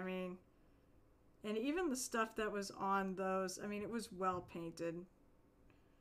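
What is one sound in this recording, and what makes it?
A young woman talks with animation through a microphone.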